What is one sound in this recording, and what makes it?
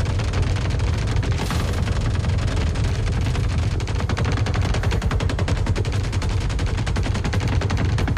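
Rubble and debris clatter as a wall breaks apart.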